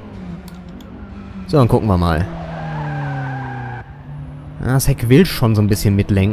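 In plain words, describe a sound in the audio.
A car engine revs hard, rising and dropping in pitch as it shifts gears.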